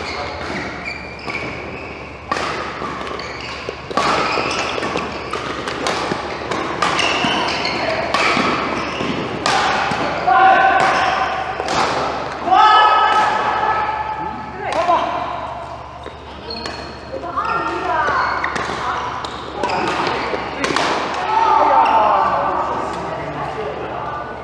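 Shuttlecocks are struck with rackets in a large echoing hall.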